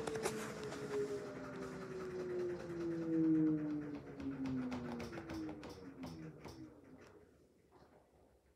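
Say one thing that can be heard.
A washing machine motor whirs and slowly winds down.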